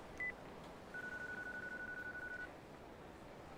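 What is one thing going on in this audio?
A phone line rings through an earpiece.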